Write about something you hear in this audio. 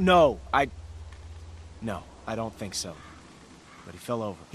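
A young man speaks hesitantly and tensely.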